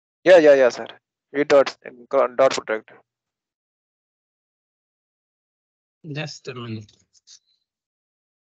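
A young man speaks calmly over an online call, in short bursts with pauses.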